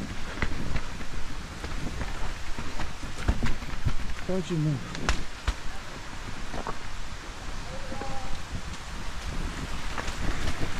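A bicycle rattles and clunks as it bumps over rocks and roots.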